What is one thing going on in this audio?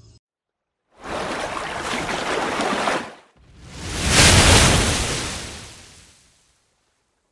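Water surges and splashes loudly.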